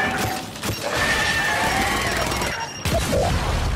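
An electric beam crackles and buzzes loudly.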